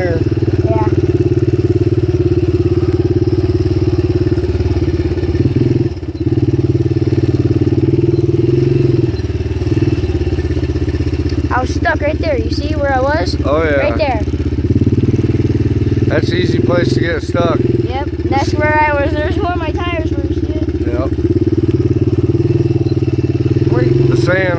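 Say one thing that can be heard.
A dirt bike engine drones loudly, rising and falling as it rides over bumps.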